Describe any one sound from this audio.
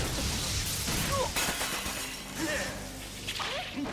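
Electricity crackles and sizzles in sharp bursts.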